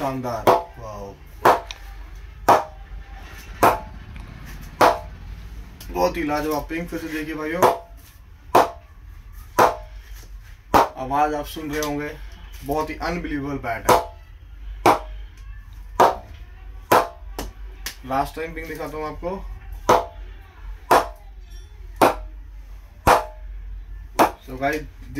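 A ball knocks against a wooden bat again and again in a steady rhythm.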